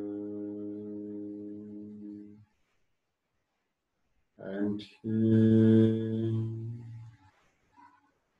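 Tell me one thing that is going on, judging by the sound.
A man sings long, steady notes close by, pausing between them.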